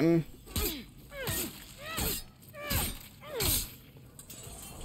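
Swords swing and strike with sharp clangs.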